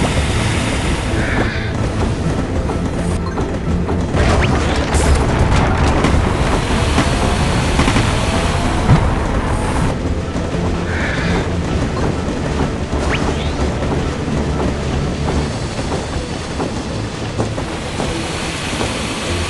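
A toy steam train chugs along steadily.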